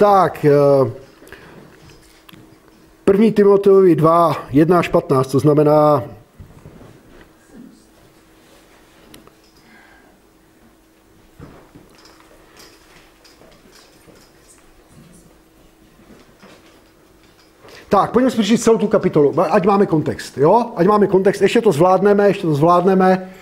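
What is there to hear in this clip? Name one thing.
A middle-aged man speaks calmly into a microphone in a room, pausing at length between phrases.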